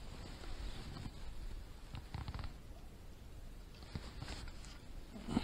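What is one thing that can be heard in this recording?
Dry reeds rustle and crackle underfoot.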